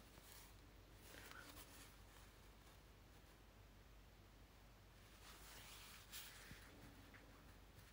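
Cloth trim rustles softly as hands handle it.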